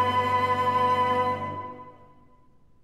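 A flute, a cello and a piano play a final chord together that rings out in a large hall.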